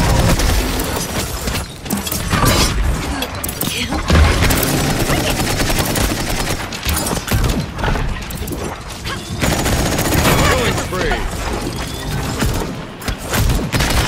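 Guns fire in rapid bursts with sharp zapping blasts.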